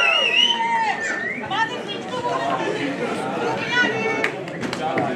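Young men sing and whoop loudly.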